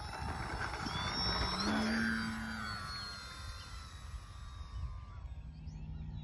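A model airplane engine whines and revs as the plane takes off.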